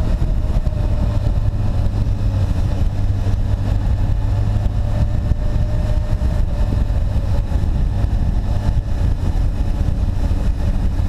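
Wind buffets a microphone on a motorcycle moving at speed.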